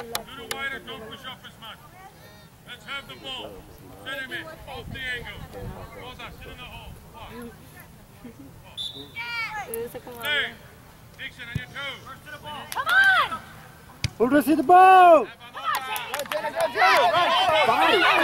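Young women shout and call out to each other outdoors, some close and some far off.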